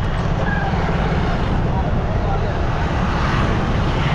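A motorbike engine drones as it passes close by.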